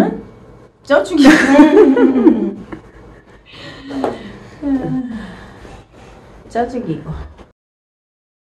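A young woman talks with animation up close.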